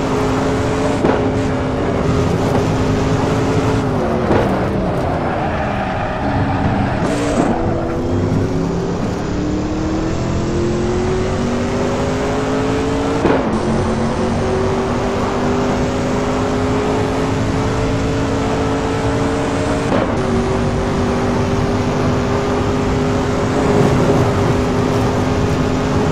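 A racing car engine roars loudly, dropping in pitch as it slows and rising steadily as it speeds up.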